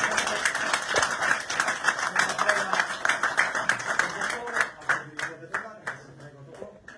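People in a room applaud loudly.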